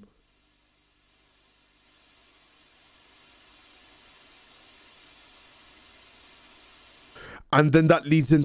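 Harsh electronic static hisses and crackles.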